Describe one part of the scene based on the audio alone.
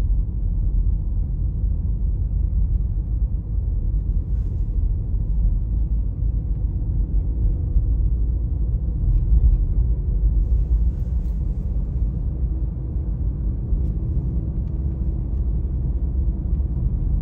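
A car engine hums low and steady from inside the car.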